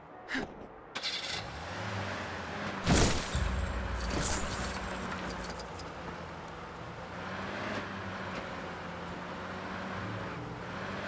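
A car engine hums as a car drives over grass.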